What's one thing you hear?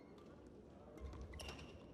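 A racket strikes a shuttlecock.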